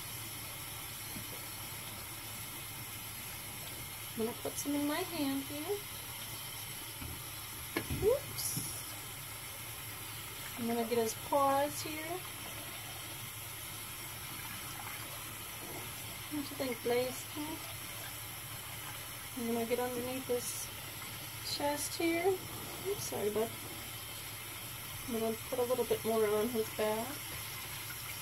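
Water runs steadily from a tap into a sink.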